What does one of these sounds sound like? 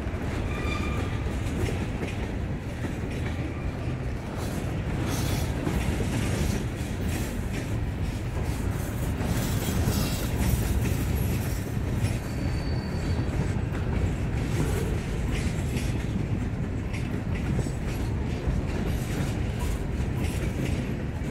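Wheels clatter and click over rail joints.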